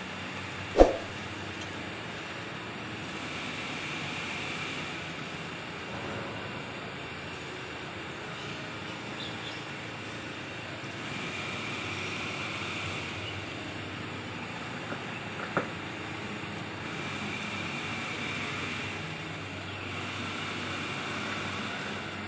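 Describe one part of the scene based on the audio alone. A conveyor belt rumbles steadily over its rollers.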